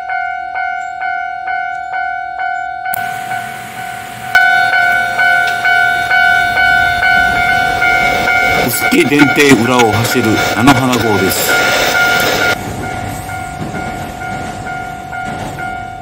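A railway crossing bell rings steadily in quick repeated dings.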